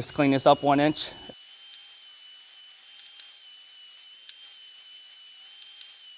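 An angle grinder hums steadily.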